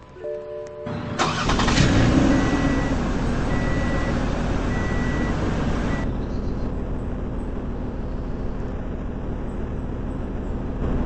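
A car engine runs as a car drives off.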